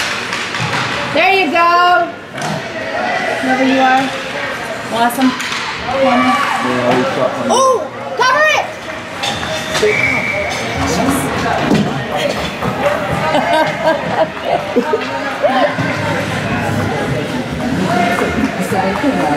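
Spectators shout and cheer in an echoing rink.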